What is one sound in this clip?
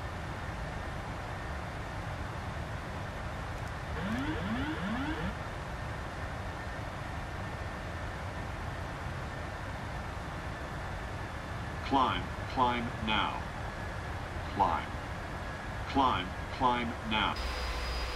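Aircraft engines drone steadily.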